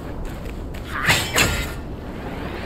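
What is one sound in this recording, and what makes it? A staff swings through the air with a sharp whoosh.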